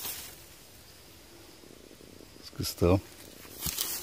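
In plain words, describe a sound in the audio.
Grass rustles as a hand brushes through it.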